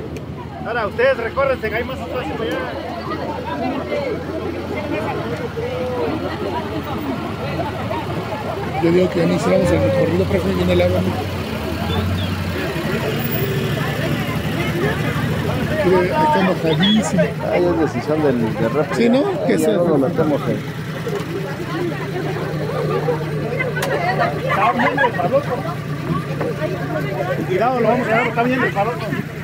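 A crowd of adults chatters and calls out outdoors nearby.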